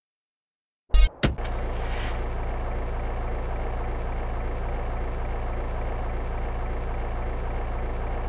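A car engine starts and idles steadily.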